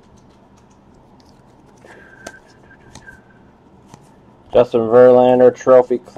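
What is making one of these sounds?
Trading cards are flipped through by hand.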